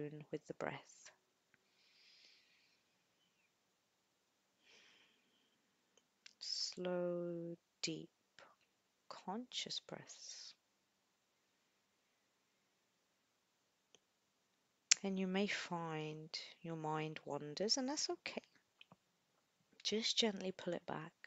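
A young woman speaks calmly into a microphone, in bursts with pauses.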